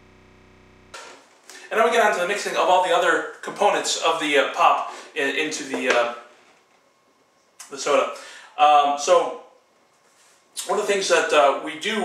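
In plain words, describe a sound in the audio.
A man speaks calmly close by, reading aloud.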